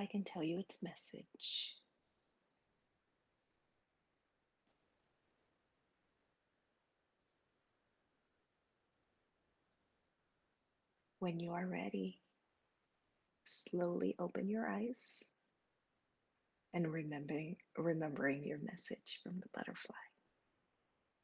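A woman speaks calmly over an online call, pausing between phrases.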